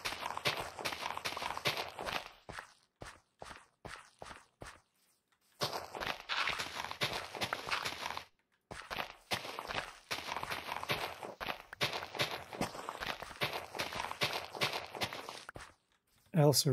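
A shovel digs rapidly into soft dirt with crunching scrapes.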